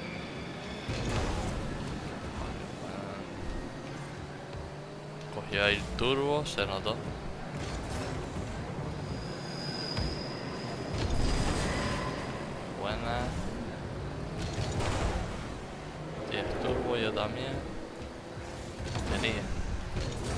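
A ball is struck with a loud thump.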